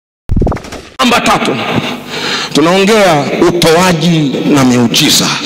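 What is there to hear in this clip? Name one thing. A man preaches with animation through a microphone, his voice filling an echoing hall.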